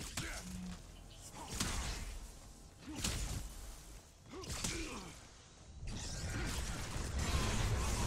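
Magic blasts whoosh and crackle in bursts.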